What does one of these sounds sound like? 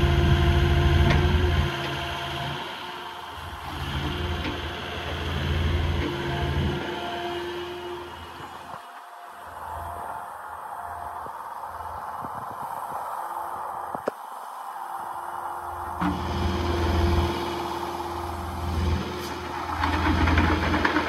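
A diesel engine of an excavator rumbles and revs up and down.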